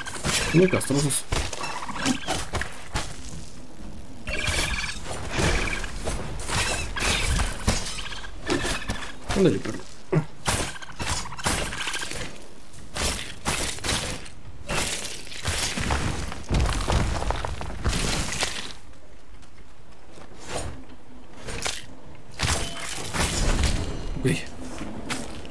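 Swords clash and strike in quick bursts during a fight.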